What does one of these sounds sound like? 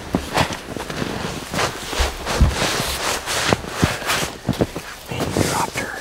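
Boots crunch on snow.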